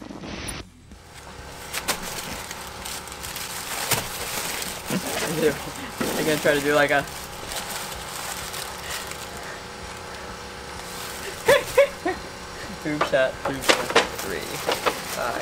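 Paper wrappers rustle and crinkle close by.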